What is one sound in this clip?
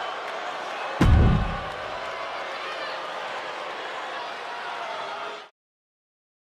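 A large crowd cheers loudly in an arena.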